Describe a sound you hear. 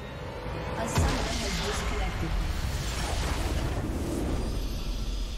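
A huge magical explosion booms and rumbles.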